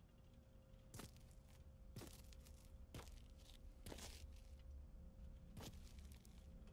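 Footsteps scuff on a hard floor.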